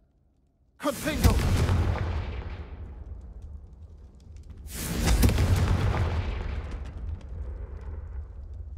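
A magic spell bursts with a loud whooshing crackle and slowly fades.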